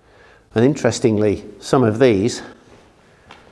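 An elderly man speaks with animation close by, in an echoing stone room.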